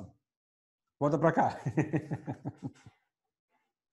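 A middle-aged man laughs heartily close by.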